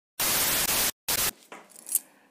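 Loud television static hisses in short bursts.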